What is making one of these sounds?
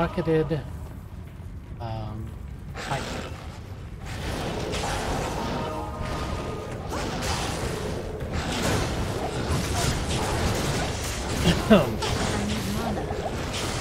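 A man talks close to a microphone.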